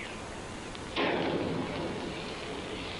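A fire flares up with a sudden whoosh.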